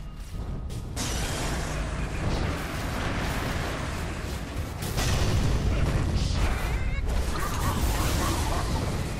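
Magic spells blast and crackle in a fierce fight.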